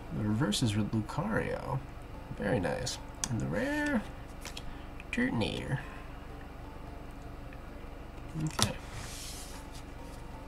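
Trading cards shuffle and rustle in hands.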